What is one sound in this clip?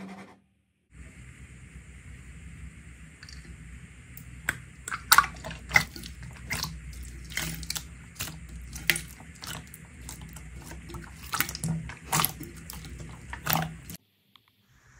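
Slime squelches and clicks softly as hands press and knead it.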